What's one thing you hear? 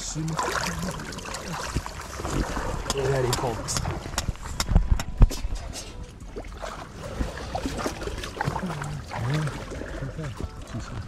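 Shallow water sloshes and splashes around wading legs.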